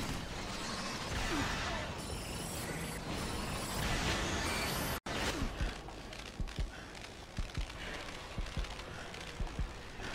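Loud explosions boom in a video game.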